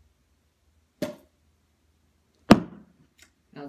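A golf club putts a ball with a sharp click.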